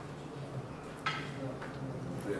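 A cue ball strikes a pack of pool balls with a sharp crack.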